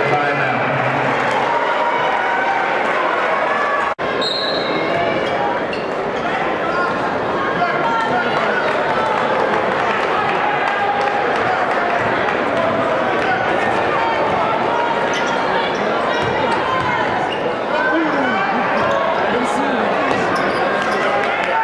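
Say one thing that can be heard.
A crowd chatters and cheers loudly in a large echoing gym.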